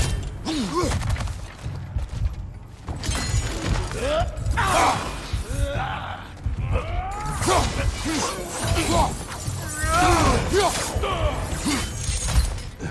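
Heavy blows thud and slash in a close fight.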